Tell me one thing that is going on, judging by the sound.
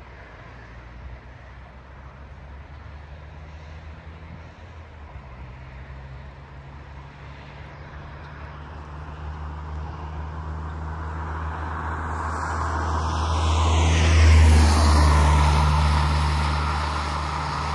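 Wind blows outdoors, rumbling and growing stronger.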